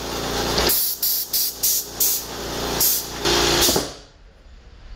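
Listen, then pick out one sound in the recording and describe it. Sandpaper scrapes rhythmically against wood.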